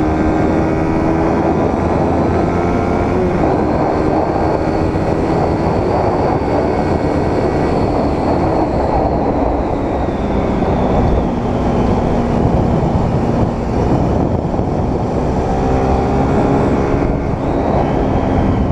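A sport motorcycle engine drones at speed, rising and falling through bends.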